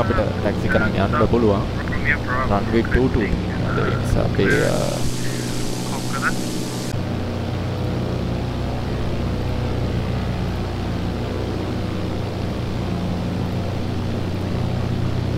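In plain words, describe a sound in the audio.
A small propeller plane's engine hums steadily.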